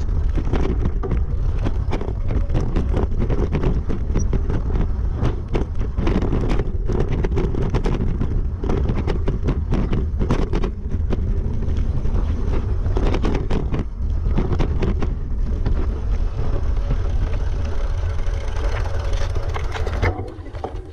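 Wind rumbles against a helmet microphone.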